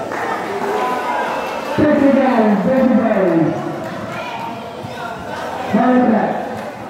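A crowd of spectators chatters and cheers loudly outdoors.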